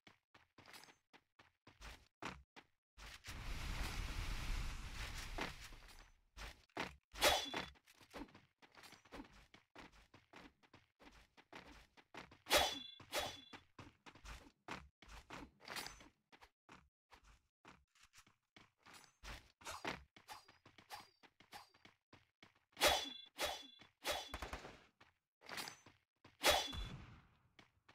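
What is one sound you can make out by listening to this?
Footsteps run quickly over grass and ground.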